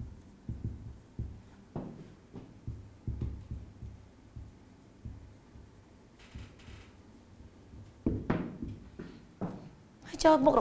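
A marker scrapes and taps on a whiteboard.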